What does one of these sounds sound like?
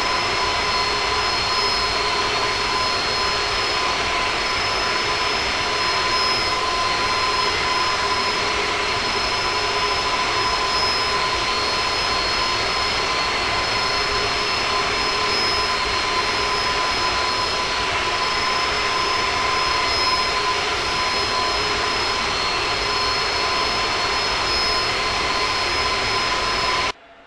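Jet engines roar steadily as an airliner cruises.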